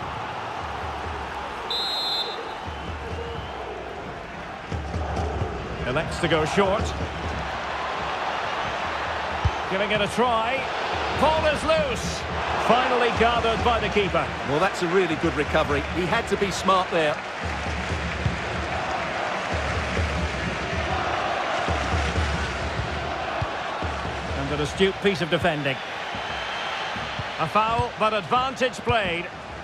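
A large stadium crowd cheers and murmurs steadily.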